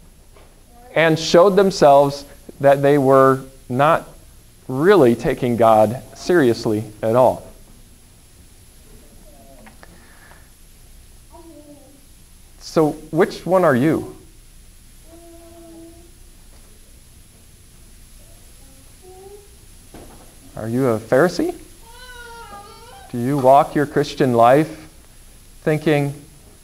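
A man speaks calmly in a room with a slight echo, pausing between phrases.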